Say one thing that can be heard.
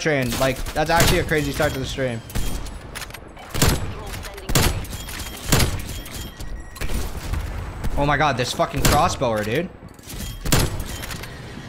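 A sniper rifle fires loud, sharp shots every few seconds.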